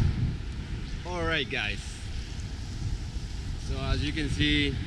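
A young man speaks calmly and close to the microphone.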